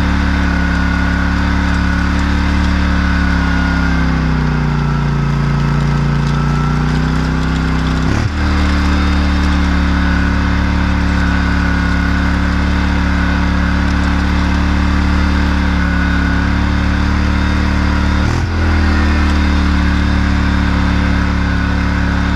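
A metal harrow rattles and clanks as it drags over soil.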